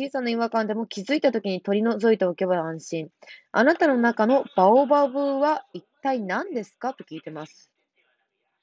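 A young woman reads out close to the microphone.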